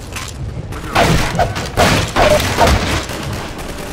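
A crowbar smashes a wooden crate.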